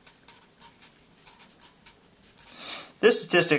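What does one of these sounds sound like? A felt-tip marker squeaks in short strokes on paper.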